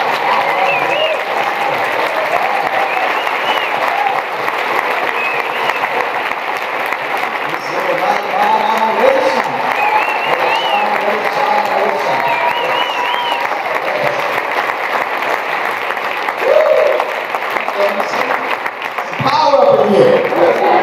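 A crowd claps and applauds steadily in a large room.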